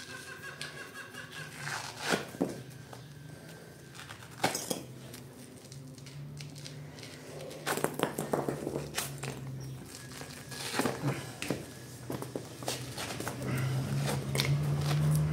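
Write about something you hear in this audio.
Dry clay pieces crack and scrape as hands break them apart on a hard floor.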